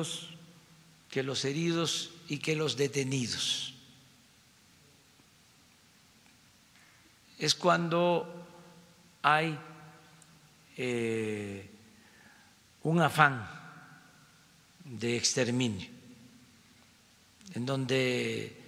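An elderly man speaks calmly into a microphone, pausing often between phrases.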